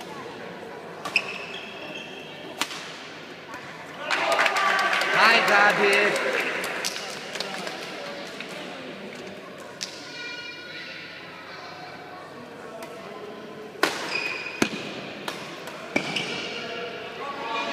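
Shoes squeak on a hall floor.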